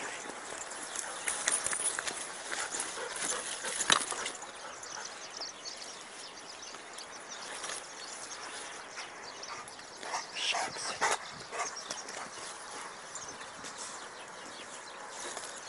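Footsteps crunch and rustle through dry brush outdoors.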